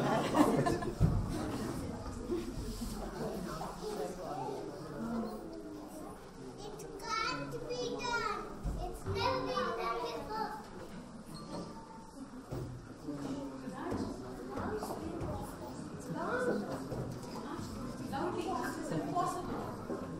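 A woman speaks quietly to children nearby.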